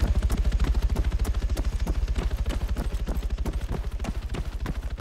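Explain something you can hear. Boots pound quickly on dry dirt.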